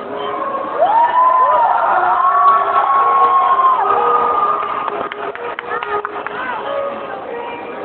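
A band plays music through loudspeakers.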